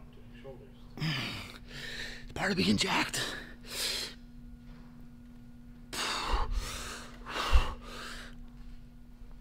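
A man exhales sharply in heavy bursts.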